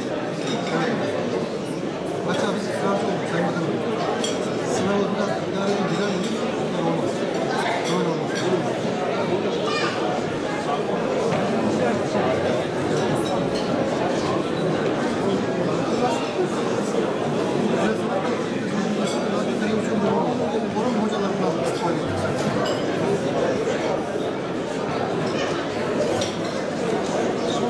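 A crowd of men and women murmurs and chatters nearby.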